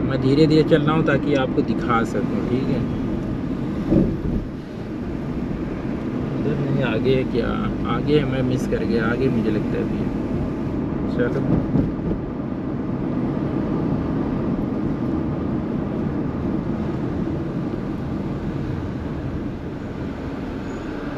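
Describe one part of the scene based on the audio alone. A car engine hums steadily as tyres roll along a road.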